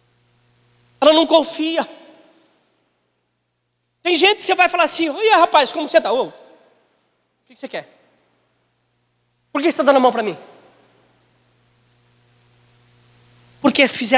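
A man speaks with animation through a microphone and loudspeakers in an echoing hall, pausing between phrases.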